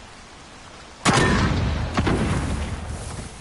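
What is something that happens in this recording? A sniper rifle fires a loud shot that echoes away.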